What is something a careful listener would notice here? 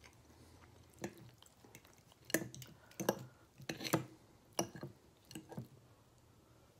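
A fork scrapes and clinks against a glass dish.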